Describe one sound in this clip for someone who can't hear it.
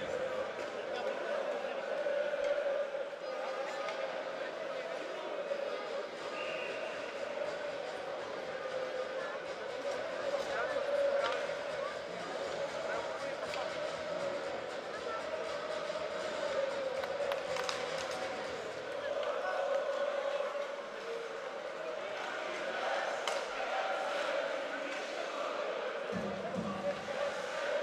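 A crowd murmurs in a large echoing ice arena.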